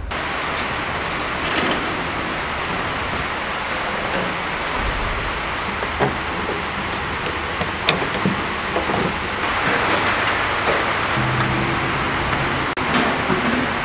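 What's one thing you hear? Wire mesh rattles and clinks as a man bends it by hand.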